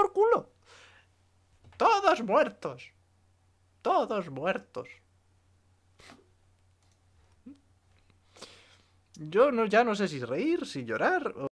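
A young man speaks with animation into a close microphone, in short bursts with pauses.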